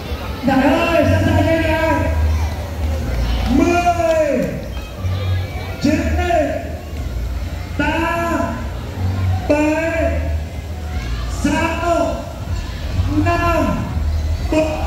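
A large crowd cheers and chants in a repeating rhythm outdoors.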